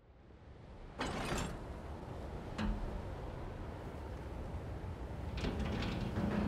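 A heavy metal valve wheel creaks as it turns.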